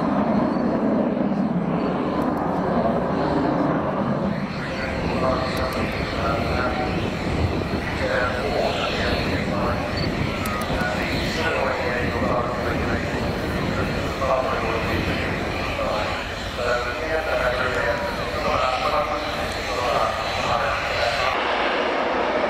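A jet aircraft roars loudly overhead with a rumbling, howling drone.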